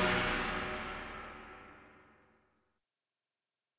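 A loud explosion rumbles and fades away.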